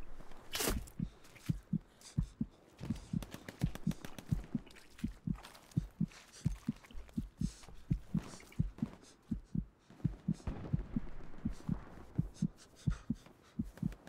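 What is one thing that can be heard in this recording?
Footsteps thud steadily on dry ground.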